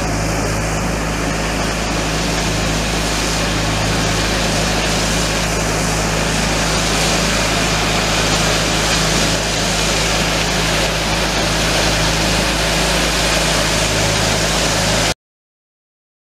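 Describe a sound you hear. Water sprays hard onto a wet road with a steady hiss.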